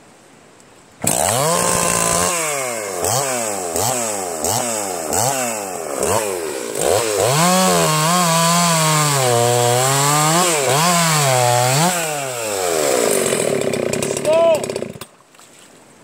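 A chainsaw engine starts and revs up and down loudly.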